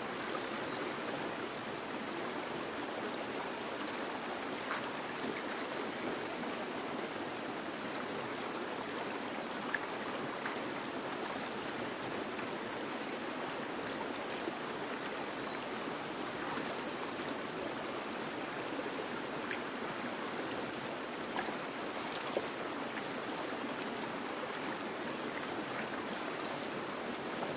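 A shallow stream flows and babbles steadily.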